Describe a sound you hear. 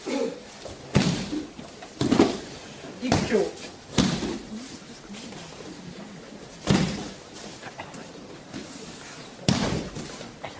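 Bodies thud onto a padded mat in a large echoing hall.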